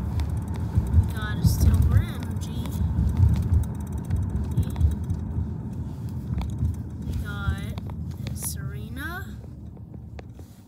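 A young boy talks close to the microphone.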